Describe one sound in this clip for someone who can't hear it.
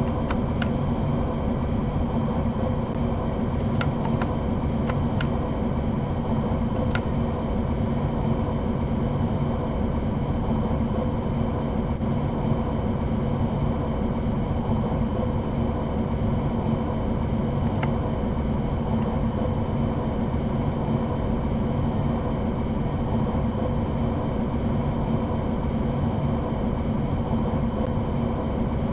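A train's electric motors hum steadily as it runs along the rails.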